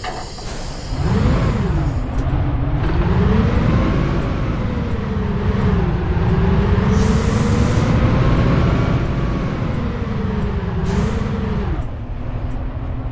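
A bus engine hums and revs, its pitch rising and falling as the bus speeds up and slows down.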